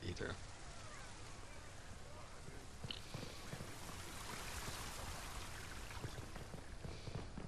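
A fountain splashes nearby.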